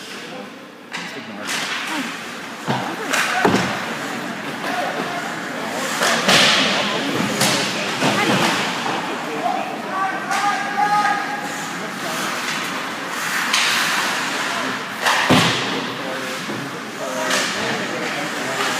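Skates scrape and carve across ice in an echoing rink.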